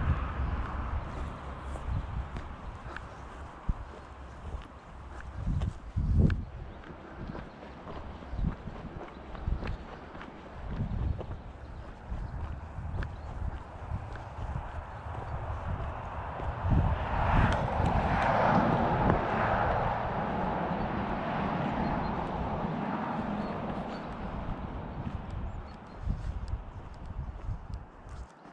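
Footsteps crunch on gravel at a steady walking pace.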